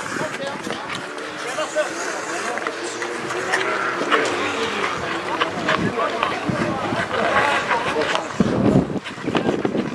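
Sticks knock against a ball with sharp clacks.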